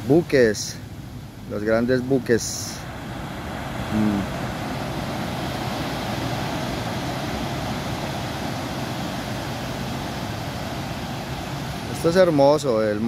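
Small waves wash and break onto a beach.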